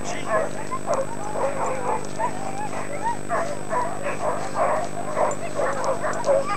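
A husky-type dog yelps and whines while running.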